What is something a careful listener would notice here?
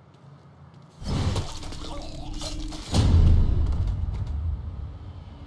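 Heavy punches thud in a scuffle.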